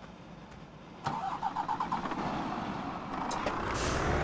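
A heavy truck engine cranks and starts up.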